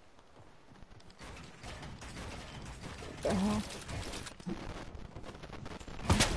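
Building pieces snap into place with quick clatters.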